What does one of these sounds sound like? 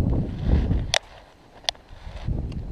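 A fishing reel clicks sharply.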